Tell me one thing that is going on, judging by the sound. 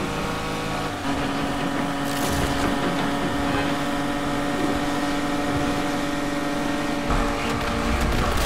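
A sports car engine roars steadily at high speed.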